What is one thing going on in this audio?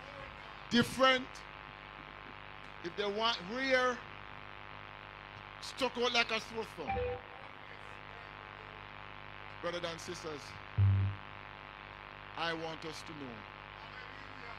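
An elderly man preaches with emphasis through a microphone, in short bursts with pauses.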